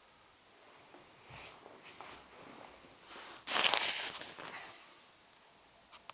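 A hand knocks and rubs against a nearby microphone.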